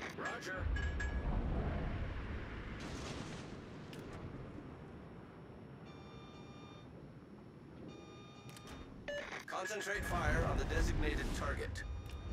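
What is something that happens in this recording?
Ship guns boom in heavy, rumbling blasts.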